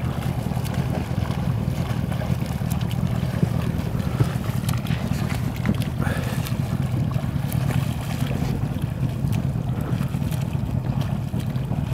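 A swimmer's arms splash rhythmically through calm water.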